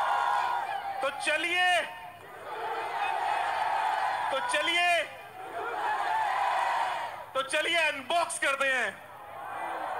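A man speaks loudly with animation through a microphone and loudspeakers in a large echoing space.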